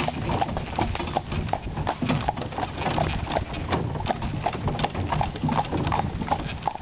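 Carriage wheels rattle and crunch over gravel.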